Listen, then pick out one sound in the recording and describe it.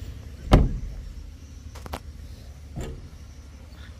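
A stick knocks against metal.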